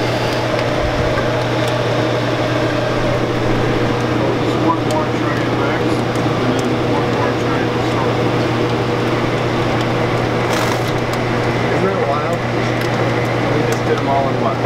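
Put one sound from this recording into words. Molten chocolate pours and splashes onto a moving wire belt.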